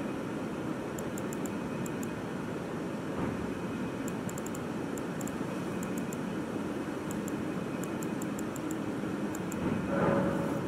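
Soft menu clicks tick in quick bursts.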